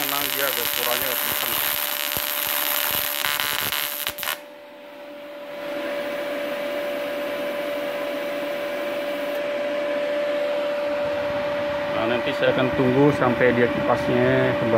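A welding machine hums steadily.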